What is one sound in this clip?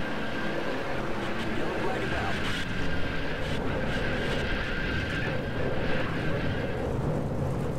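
Tyres screech as cars spin out.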